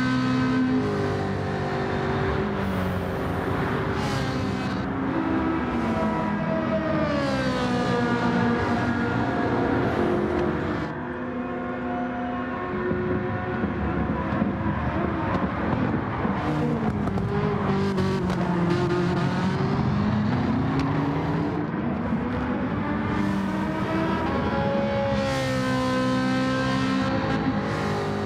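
Racing car engines roar, revving up and down.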